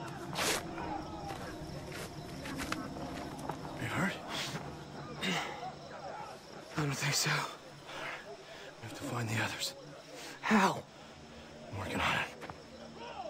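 A man speaks urgently in a low voice, close by.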